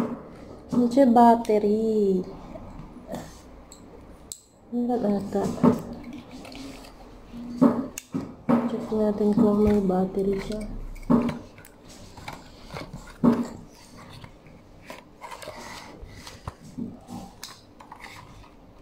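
A plastic tripod clicks and knocks as hands adjust it.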